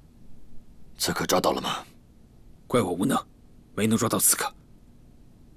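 A young man speaks quietly and apologetically.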